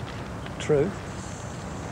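A man calls out briefly, close by.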